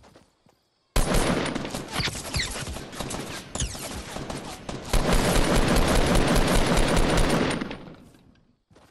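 Rapid gunfire crackles loudly in bursts.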